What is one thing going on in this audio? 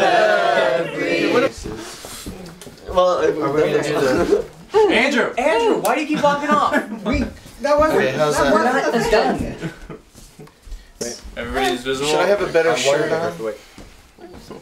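A group of men and women sing together nearby.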